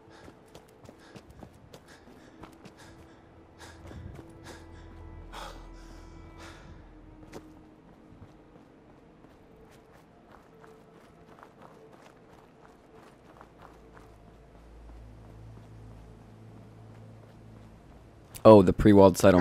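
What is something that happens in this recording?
Footsteps crunch on gravel and dry ground.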